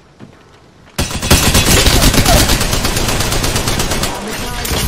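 An automatic rifle fires rapid bursts of gunshots.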